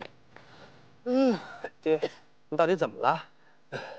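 A man speaks anxiously, close by.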